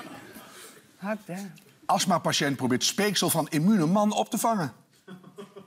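A middle-aged man speaks calmly into a microphone.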